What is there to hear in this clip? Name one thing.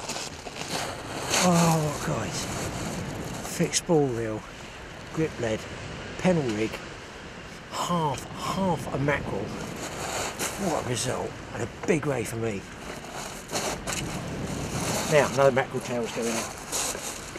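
An older man talks with animation close by.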